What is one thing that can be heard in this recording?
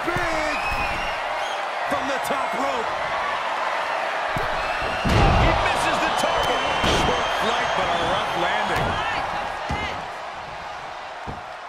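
A large crowd cheers and shouts in a big arena.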